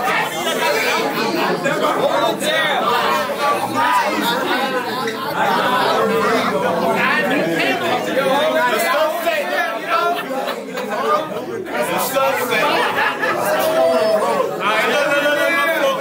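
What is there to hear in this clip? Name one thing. A young man raps forcefully up close.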